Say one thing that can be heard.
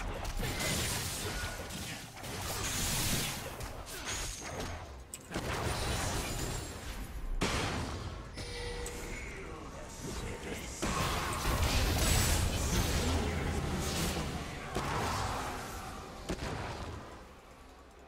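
Spell and combat effects crackle and burst in a fast fight.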